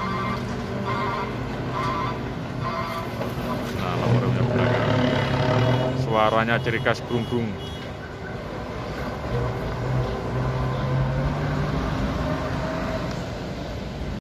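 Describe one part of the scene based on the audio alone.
A truck engine rumbles as the truck slowly pulls away.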